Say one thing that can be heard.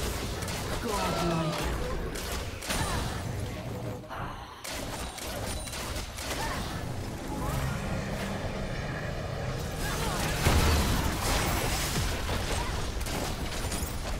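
Video game spell effects crackle and burst during a fight.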